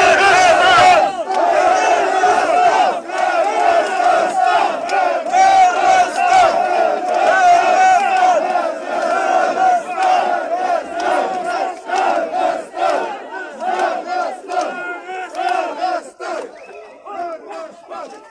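A crowd of men calls out together outdoors.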